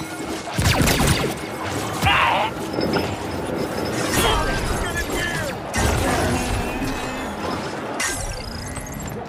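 Sharp blasts and impacts hit loudly.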